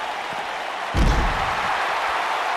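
A heavy body slams hard onto the floor with a loud thud.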